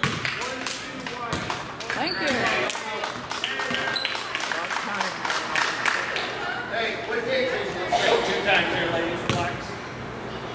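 Sneakers squeak on a hard floor in an echoing gym.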